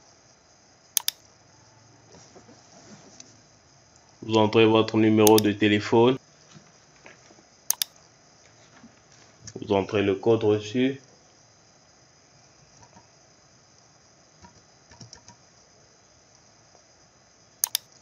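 A computer mouse clicks sharply a few times.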